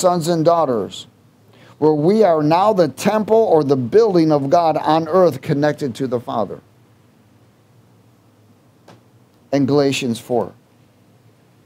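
A man speaks steadily into a microphone, pausing now and then.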